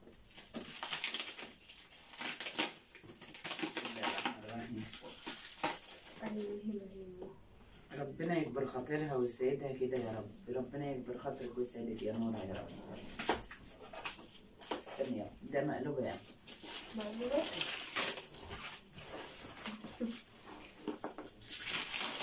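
Plastic wrapping crinkles and rustles as a package is handled.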